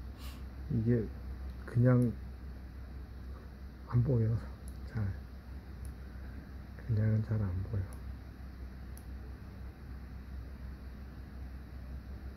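Small scissors snip softly.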